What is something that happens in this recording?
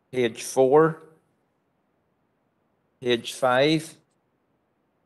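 An elderly man speaks calmly into a microphone in short phrases.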